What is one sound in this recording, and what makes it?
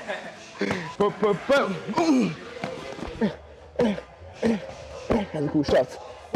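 Gloved punches thud against pads.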